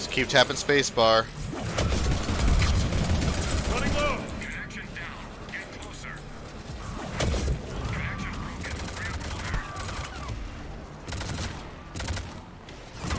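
Guns fire in sharp bursts amid a rumbling battle.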